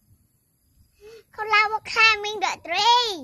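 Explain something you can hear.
A young girl speaks brightly and loudly, close by.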